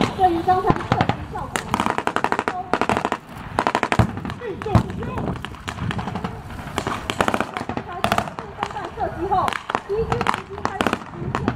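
Machine guns fire rapid bursts of blank rounds outdoors.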